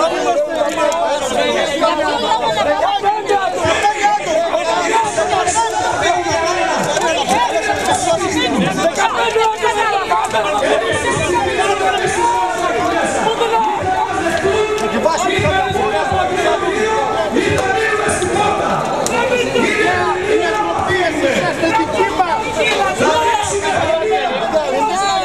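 A crowd of men talks and shouts over one another up close.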